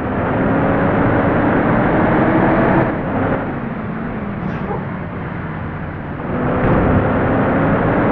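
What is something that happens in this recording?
Rain patters on a car's windows.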